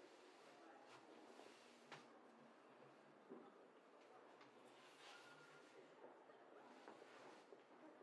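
Bedsheets rustle as a woman sits up in bed.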